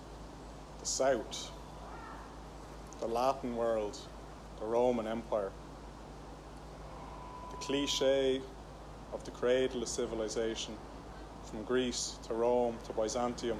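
A man speaks outdoors, in short spoken phrases with pauses.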